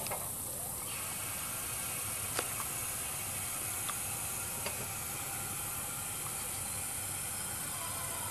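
An electric motor hums steadily as a lift boom moves.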